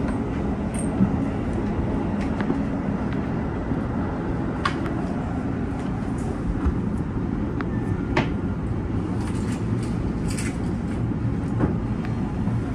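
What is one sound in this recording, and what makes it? Train wheels click and clack over rail joints.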